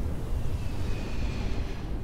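A spaceship engine rumbles deeply.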